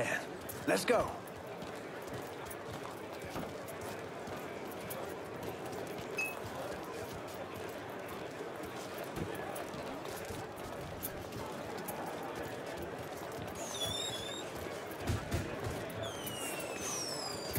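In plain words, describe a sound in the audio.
A crowd murmurs and chatters in the street all around.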